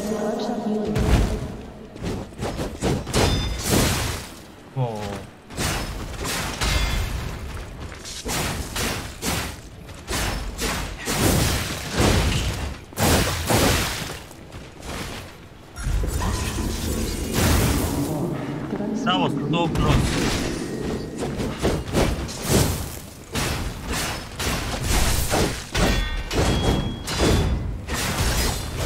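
Swords clash and slash in quick, sharp strikes.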